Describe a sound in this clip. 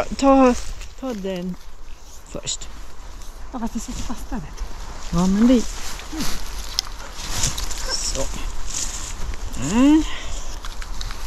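A woman speaks nearby in a high, calling voice.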